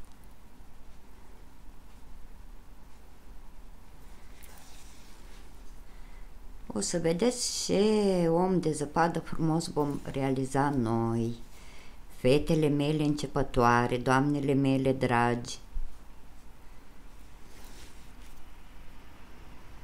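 A needle and yarn pull softly through knitted fabric.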